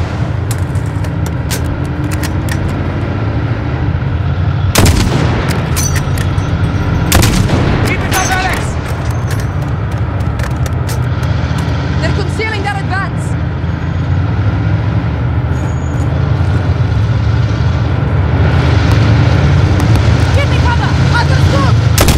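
A vehicle engine rumbles low and steadily.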